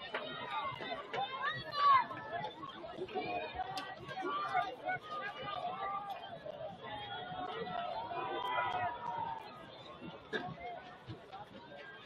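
A crowd cheers and shouts from the stands.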